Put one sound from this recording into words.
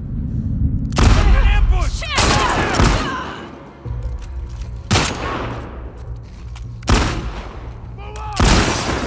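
Gunshots ring out loudly, each followed by a ringing echo.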